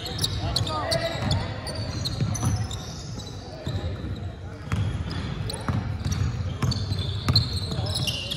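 Sneakers squeak on a hardwood court in an echoing hall.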